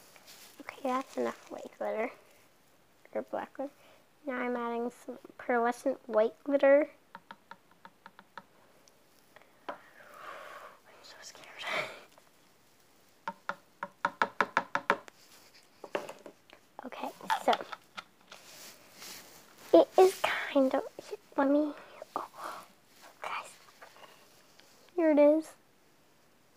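A girl talks with animation close by.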